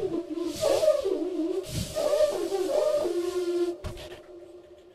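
A bamboo flute plays a wavering, sliding melody close by.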